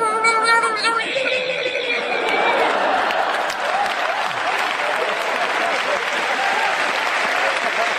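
An audience laughs loudly.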